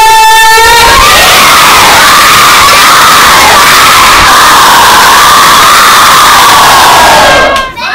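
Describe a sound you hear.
A large crowd of children shouts and cheers together.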